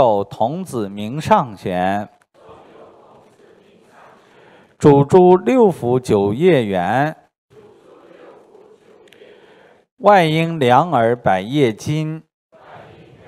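A man reads aloud calmly into a microphone, in short bursts with pauses.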